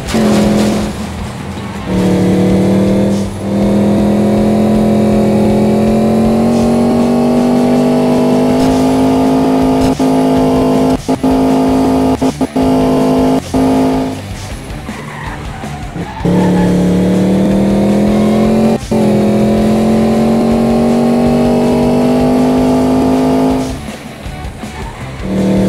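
A racing car engine roars steadily, rising in pitch as it speeds up.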